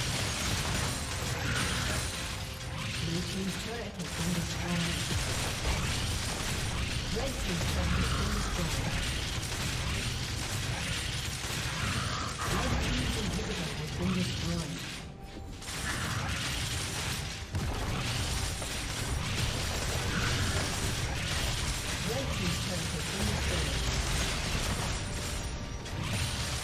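Video game battle sound effects clash and burst rapidly.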